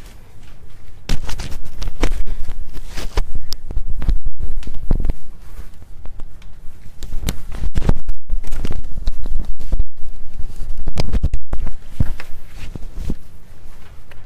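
Clothes and a plastic hanger rustle and clatter as they are handled.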